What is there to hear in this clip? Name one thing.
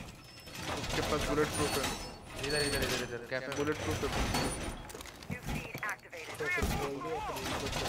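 Metal panels clank and rattle as a wall is reinforced.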